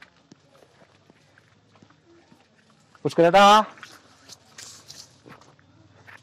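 Footsteps shuffle softly on the ground outdoors.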